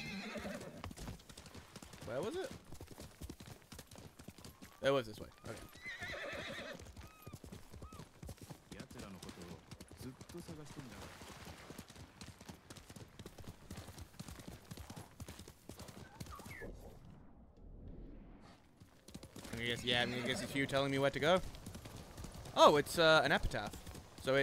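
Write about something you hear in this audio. A horse gallops with quick, steady hoofbeats on soft ground.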